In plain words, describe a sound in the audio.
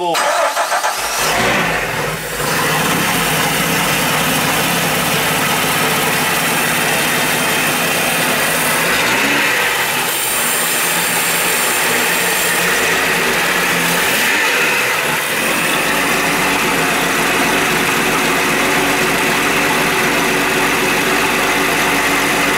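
A boat engine idles with a steady rumbling hum.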